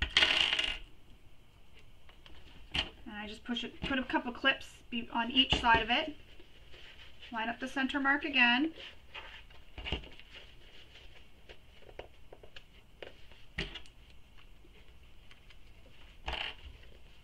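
Fabric rustles as it is folded and handled.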